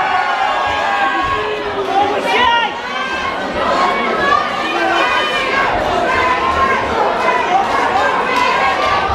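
A crowd talks and shouts in a large echoing hall.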